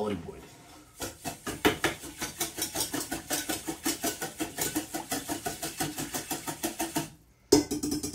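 A whisk beats quickly and steadily against a bowl.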